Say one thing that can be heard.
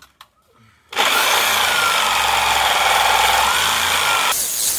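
A reciprocating saw runs loudly with a buzzing whine.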